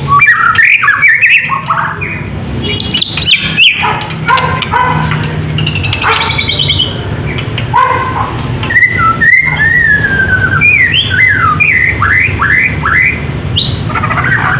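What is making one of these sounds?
A songbird sings loud, varied whistles and chirps close by.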